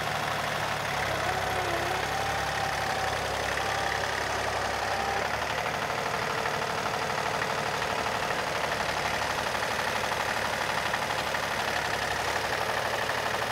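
A tractor engine chugs steadily close by.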